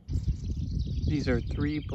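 Several chicks cheep loudly.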